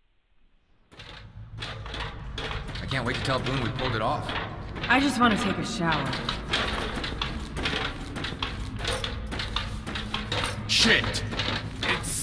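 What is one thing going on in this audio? Feet clank on metal ladder rungs while climbing.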